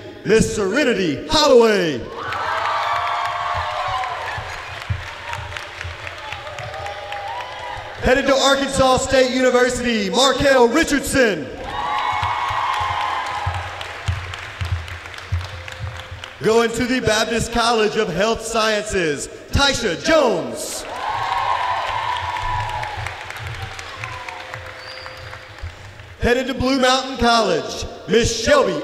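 A man announces into a microphone.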